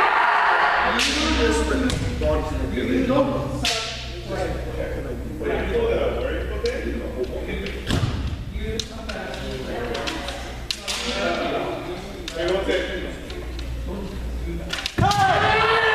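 Bamboo swords clack sharply together.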